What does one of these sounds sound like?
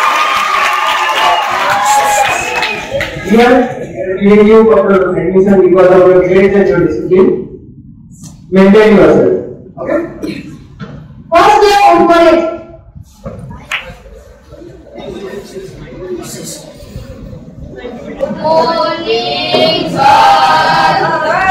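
A crowd of children chatters and murmurs in the background.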